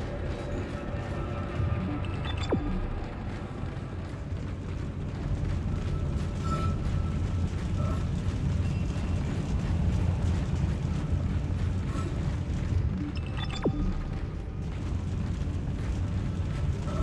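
Heavy metal boots clank on a metal walkway.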